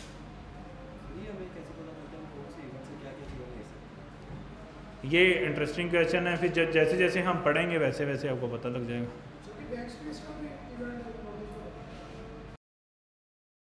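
A young man speaks into a close microphone, in an animated way.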